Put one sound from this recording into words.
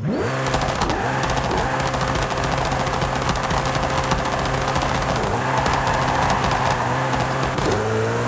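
A race car engine revs hard and roars, dropping briefly with each gear change.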